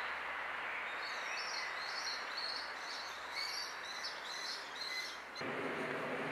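A young sparrowhawk calls with high, thin cheeps.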